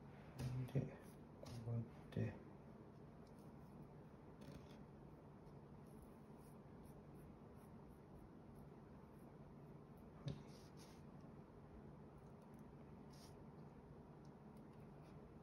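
Fingers softly brush and scrape through sand.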